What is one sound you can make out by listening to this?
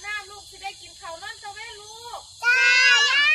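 Young girls sing a short song close by.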